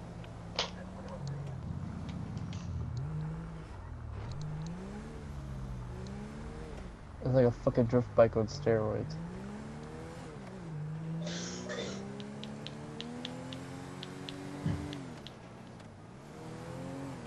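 A car engine revs up and down as the car drives along.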